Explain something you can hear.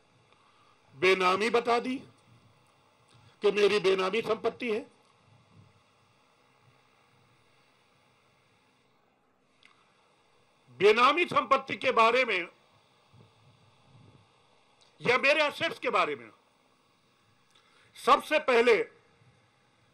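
A middle-aged man speaks calmly into microphones in short bursts.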